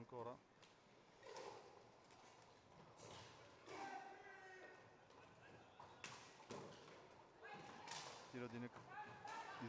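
Players shout to each other across an echoing hall.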